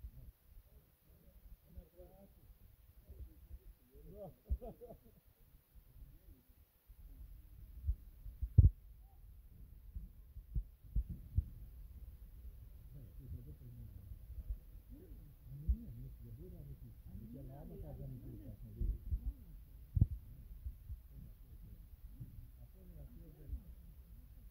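Men talk in low voices at a distance, outdoors.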